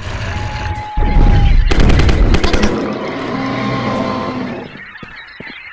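A creature roars loudly.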